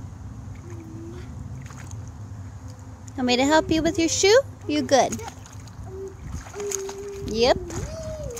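Water laps and splashes gently as a child swims.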